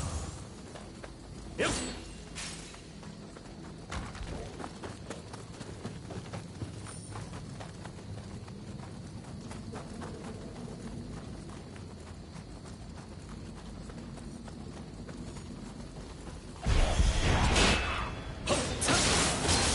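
Footsteps crunch softly on the ground.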